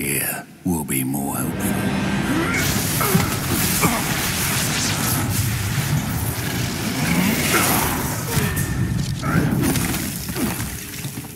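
A magic spell crackles and hisses loudly.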